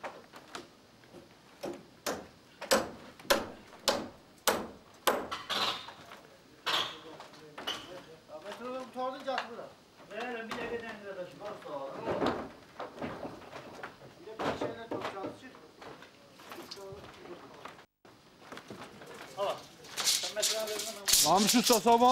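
Wooden boards knock and clatter.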